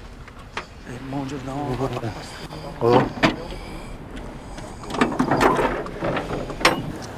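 Men call out to each other outdoors.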